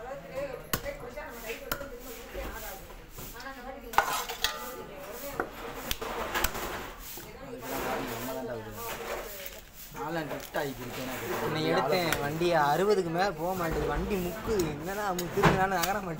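A knife chops and scrapes through fish on a wooden board.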